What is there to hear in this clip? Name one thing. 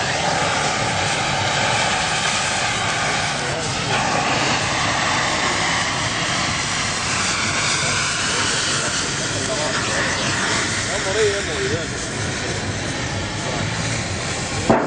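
A cutting torch hisses and roars steadily against metal.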